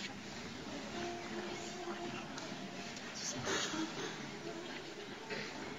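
A girls' choir sings softly in a large echoing hall.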